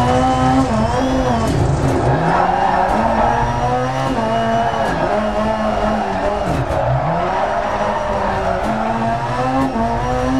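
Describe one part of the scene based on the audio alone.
A racing car engine roars loudly, revving up and down through gear changes.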